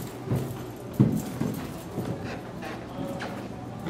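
Footsteps tread on a carpeted floor.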